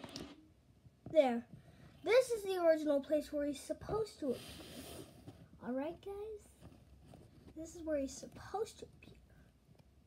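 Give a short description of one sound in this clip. A boy speaks with animation close to the microphone.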